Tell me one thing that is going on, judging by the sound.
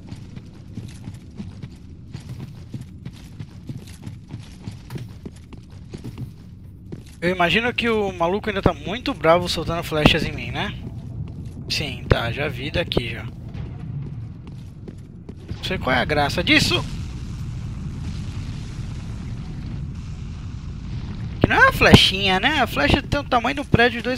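Armoured footsteps tread over stone.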